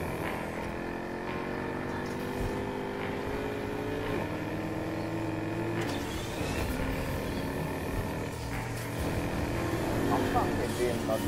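A sports car engine roars at high speed, its pitch rising and dropping as it shifts gears.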